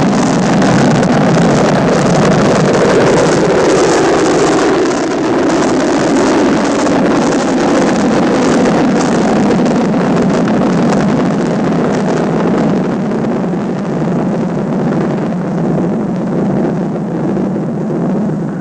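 A rocket engine roars loudly and slowly fades as it climbs away.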